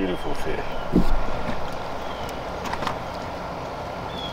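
A fish splashes in the water beside a boat.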